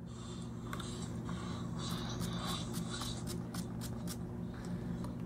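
A spray bottle mists in quick short hissing bursts.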